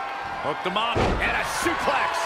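A wrestler slams heavily onto the ring mat with a loud thud.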